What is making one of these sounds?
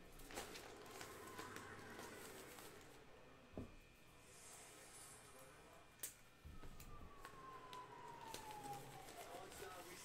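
A plastic bag rustles as hands dig through it.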